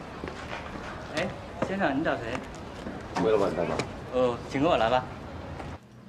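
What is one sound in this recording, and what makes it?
A man asks questions calmly nearby.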